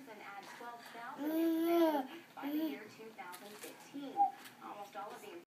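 A toddler babbles and squeals close by.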